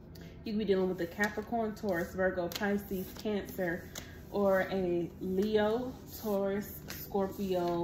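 Playing cards are laid down on a table with soft slaps.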